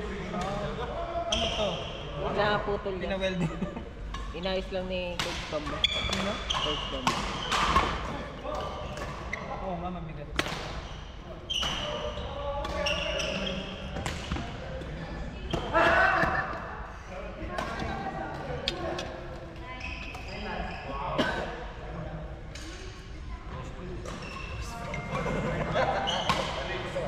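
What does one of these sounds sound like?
Young men and women chat and call out across a large hall.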